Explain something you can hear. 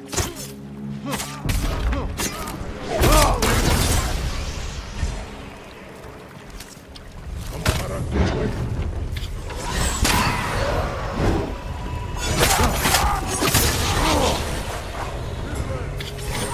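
Swords clash and ring in a fierce fight.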